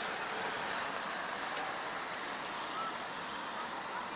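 A bicycle rolls past on the road.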